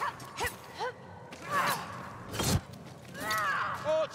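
Blades swish through the air.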